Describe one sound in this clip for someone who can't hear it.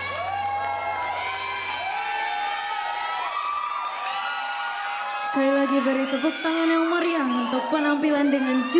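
A group of young women sing together.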